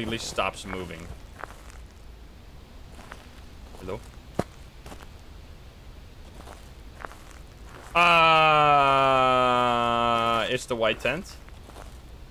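A young man speaks briefly and calmly into a close microphone.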